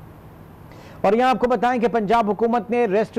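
A man reads out the news clearly through a microphone.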